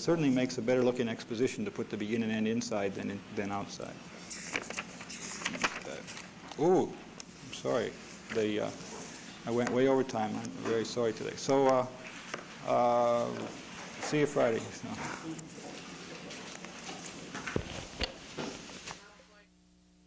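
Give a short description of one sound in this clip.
An older man speaks calmly into a lapel microphone.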